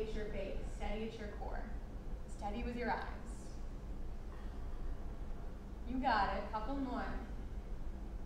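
A woman gives calm instructions.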